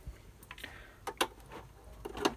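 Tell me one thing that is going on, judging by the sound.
A cable plug clicks into a socket.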